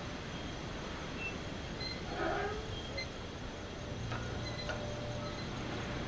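A metal gate creaks as it swings open.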